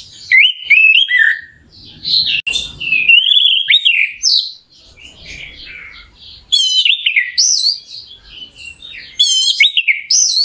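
A small songbird sings loud, rapid, varied whistling phrases close by.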